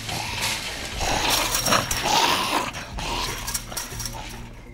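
A man mutters a curse under his breath.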